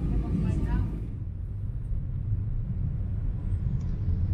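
Motorbike engines rumble nearby in traffic.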